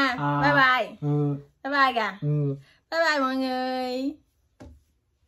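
A young woman speaks brightly and with animation close by.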